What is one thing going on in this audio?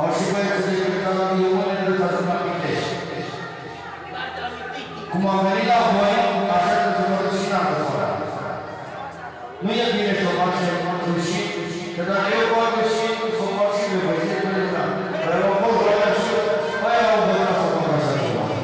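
A man sings loudly into a microphone, heard through loudspeakers.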